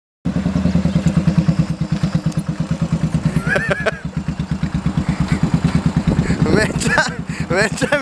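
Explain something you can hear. A motorcycle engine idles with a deep, loping thump.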